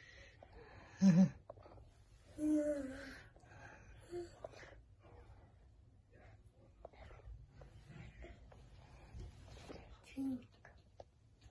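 A young girl speaks softly and briefly nearby.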